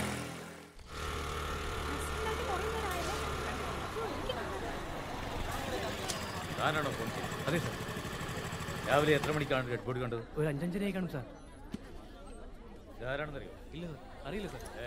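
A crowd murmurs and chatters on a busy street.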